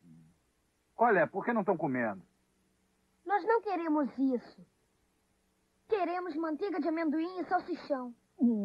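A boy speaks with animation.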